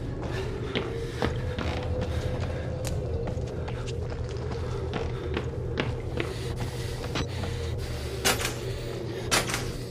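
Footsteps creak on an old wooden floor.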